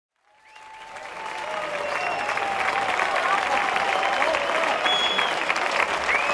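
A large crowd cheers and shouts loudly, growing louder.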